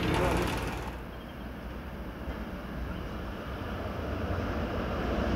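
An electric train hums in the distance as it approaches.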